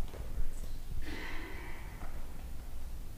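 A man speaks briefly and quietly at a distance in an echoing room.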